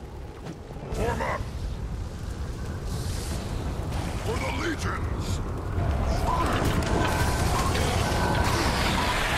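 Magic blasts whoosh and crash in a fight.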